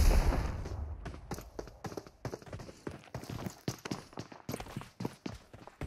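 Game footsteps thud quickly on wooden stairs.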